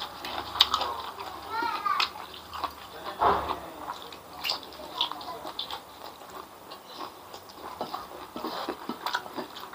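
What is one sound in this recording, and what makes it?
Fingers squish and squelch in soft rice.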